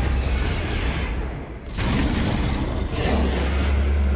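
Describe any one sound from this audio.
A huge creature's wings beat heavily with a deep rumble.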